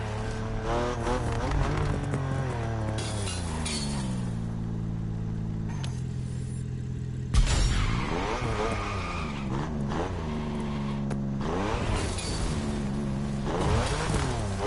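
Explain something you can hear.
A race car engine revs high and shifts gears.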